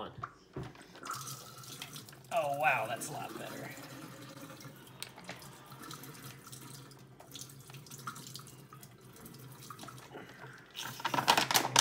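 Water pours from a bottle and splashes into a metal sink.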